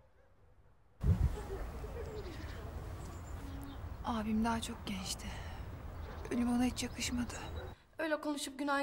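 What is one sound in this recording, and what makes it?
A young woman speaks softly over a phone.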